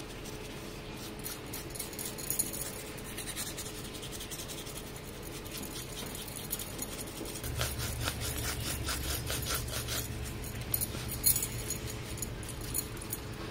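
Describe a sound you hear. A paintbrush brushes softly over a textured surface.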